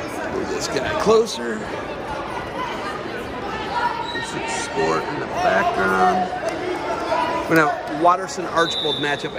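Men and women in the crowd shout and cheer loudly.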